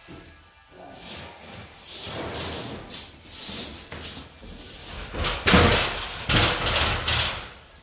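A spray can hisses in bursts.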